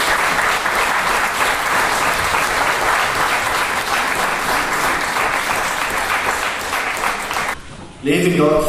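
An audience claps in a large echoing hall.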